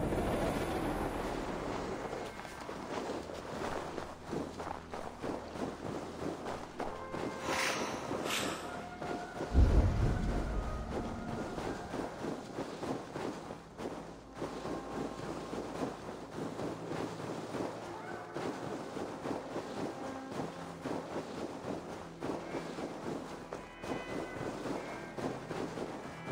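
Footsteps crunch quickly through deep snow.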